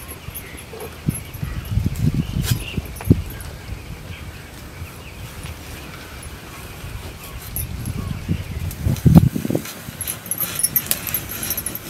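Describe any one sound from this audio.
A knife scrapes and slices through a thick, juicy leaf.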